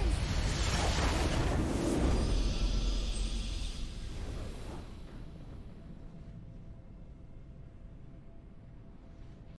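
A bright victory fanfare swells and then fades away.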